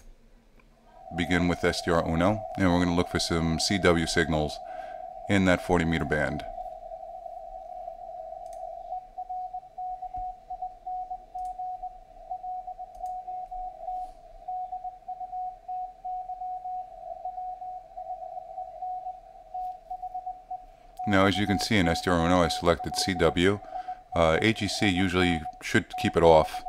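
Morse code beeps steadily through a radio receiver.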